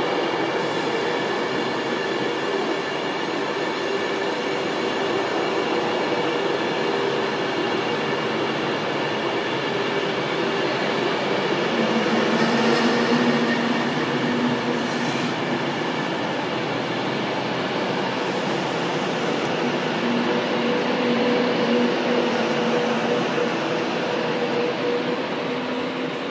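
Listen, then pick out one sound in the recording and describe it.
A train rumbles and hums steadily past close by on the rails.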